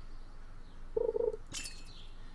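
A short game chime sounds as a fish bites the line.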